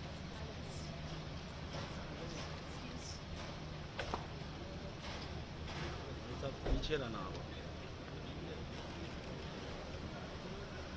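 A crowd of men murmurs nearby.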